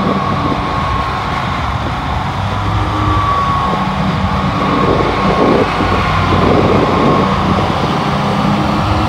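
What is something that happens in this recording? Mower blades whir through grass.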